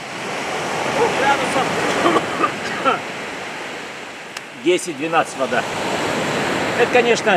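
An elderly man talks breathlessly close by.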